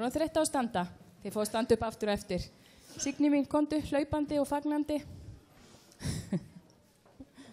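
A middle-aged woman speaks with animation through a microphone in an echoing hall.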